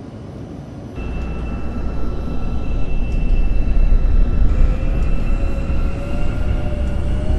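A train's motors whine and slowly rise in pitch.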